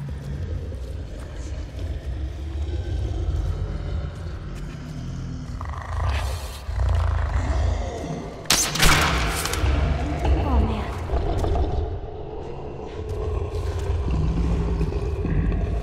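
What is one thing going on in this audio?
Monstrous creatures growl and shriek nearby.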